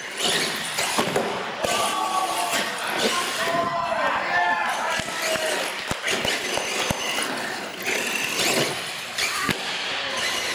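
Plastic wheels thud and clatter as a toy truck lands on a hard floor.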